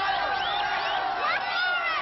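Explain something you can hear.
A woman screams.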